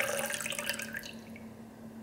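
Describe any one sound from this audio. Liquid pours into a metal cup.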